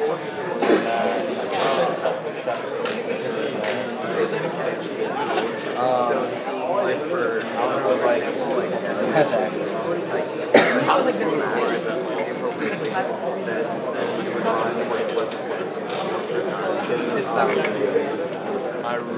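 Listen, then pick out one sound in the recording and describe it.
Many young people chatter at once in a large echoing hall.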